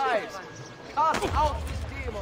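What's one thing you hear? A heavy thud sounds as a figure lands hard on the ground.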